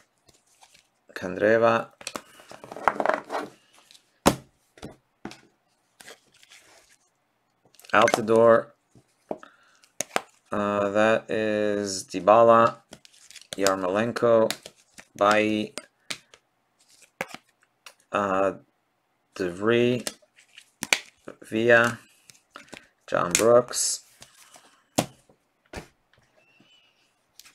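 Plastic card cases click and clack against each other.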